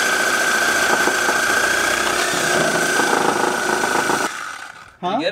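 A power tool whirs steadily close by.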